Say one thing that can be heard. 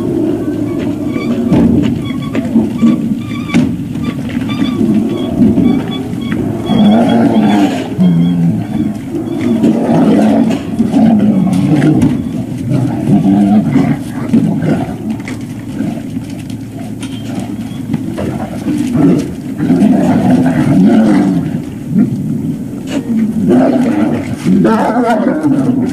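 Several dogs crunch and lap food from metal bowls close by.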